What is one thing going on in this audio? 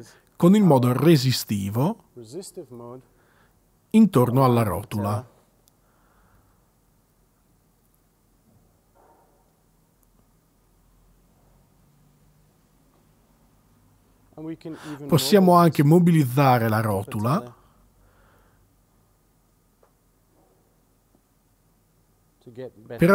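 A man speaks calmly and close to a microphone, in short bursts with long pauses.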